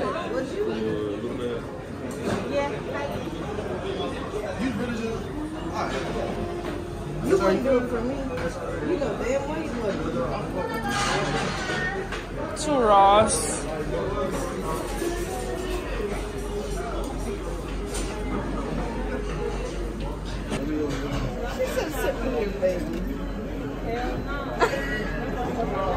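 Several adults talk and chatter nearby in a busy room.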